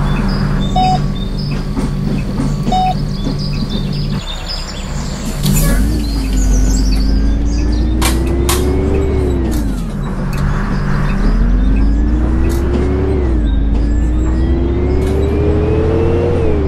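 A bus engine rumbles at idle, then revs and rises in pitch as the bus pulls away and shifts gears.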